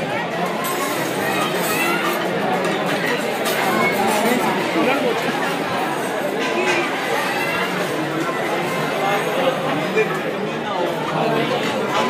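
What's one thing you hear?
A large crowd of men chatters loudly in an echoing hall.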